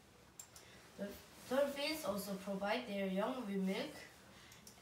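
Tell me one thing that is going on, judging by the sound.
A boy speaks clearly and calmly close by.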